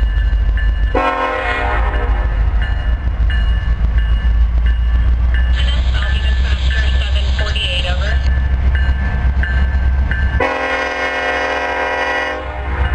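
A train horn blasts loudly in long blasts.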